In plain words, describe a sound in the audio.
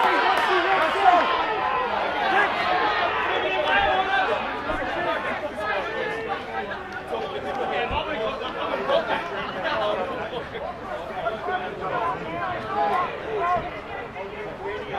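A crowd of spectators chatters.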